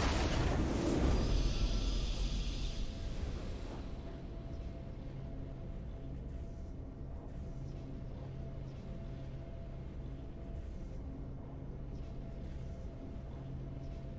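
A triumphant victory fanfare plays and fades.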